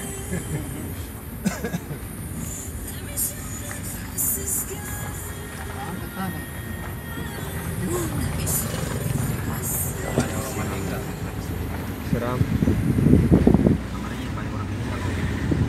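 A car engine rumbles steadily as the car drives slowly.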